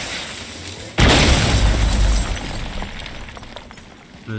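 Stone and wood shatter and crash down loudly.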